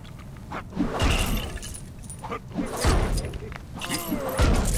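Coins jingle as they are collected.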